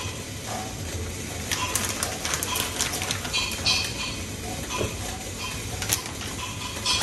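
Vegetables drop into a metal steamer pot with light clinks.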